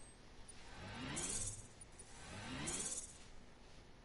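A game menu plays a rising electronic whoosh as a score tallies up.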